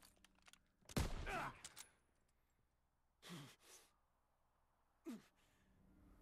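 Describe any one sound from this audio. Gunshots crack loudly a few times.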